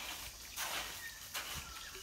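A trowel scrapes through wet cement.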